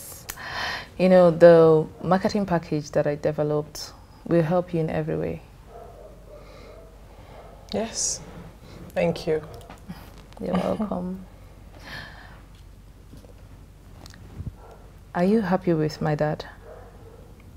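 A second young woman speaks with animation, close by.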